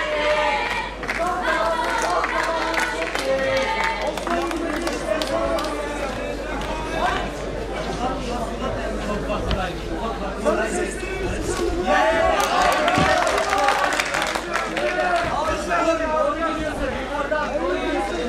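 Spectators shout and cheer around the cage.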